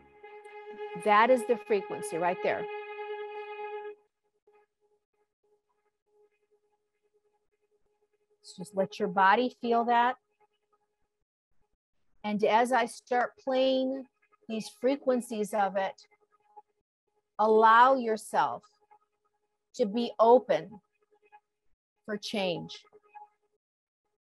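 An elderly woman speaks calmly and slowly through a microphone, with pauses.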